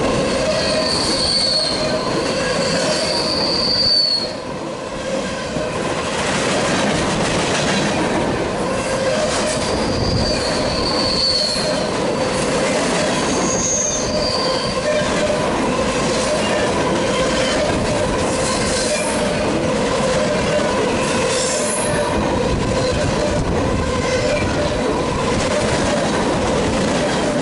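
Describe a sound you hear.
A freight train rumbles past close by, wheels clattering steadily on the rails.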